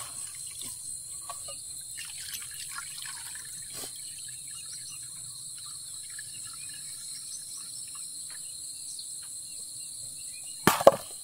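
Water pours from a pot onto the ground.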